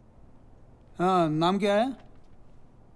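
A woman speaks quietly and tensely, close by.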